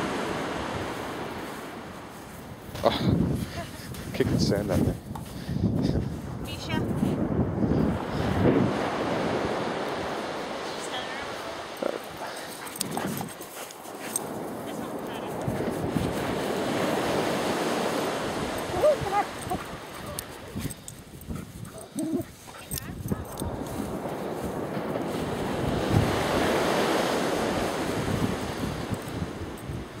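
Dogs dig in sand, paws scratching and scattering it.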